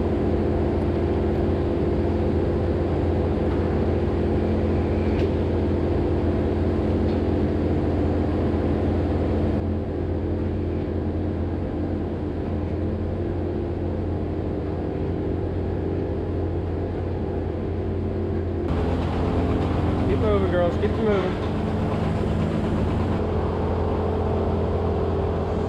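Milking machines hum and pulse steadily.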